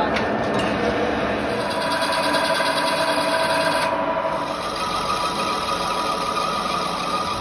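A metal lathe hums steadily as it cuts metal.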